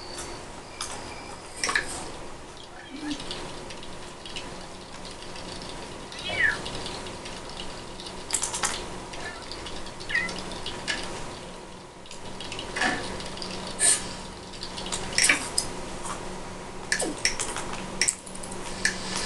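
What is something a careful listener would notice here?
A video game plays short chimes and blips from a television speaker.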